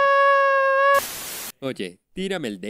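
Television static hisses in a short burst.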